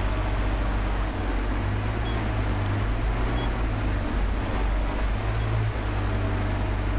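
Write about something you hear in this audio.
A heavy engine rumbles low and steady.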